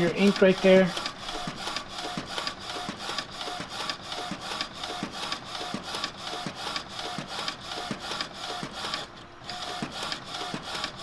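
A printer whirs and clicks rhythmically as it prints.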